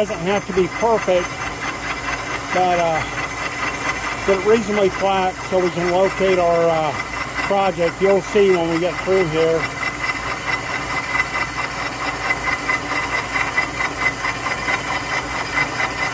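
A milling machine whirs steadily as its cutter grinds through metal.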